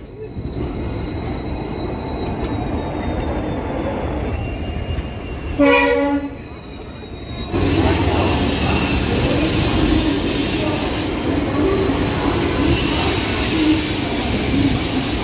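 A train rumbles steadily along the tracks.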